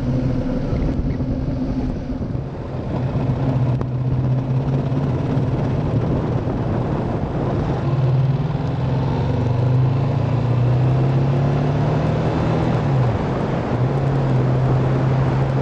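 A motorcycle engine hums steadily up close, shifting pitch as it speeds up and slows.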